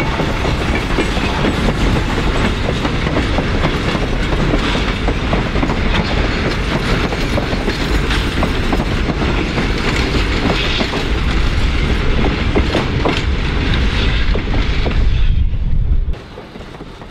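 Heavy freight cars rumble and clatter loudly along the rails, then the noise suddenly drops away.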